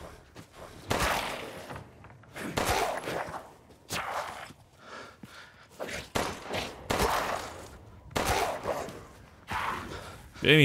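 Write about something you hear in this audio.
A pistol fires sharp shots one after another.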